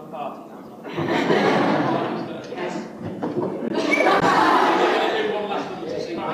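Young girls chatter and cheer.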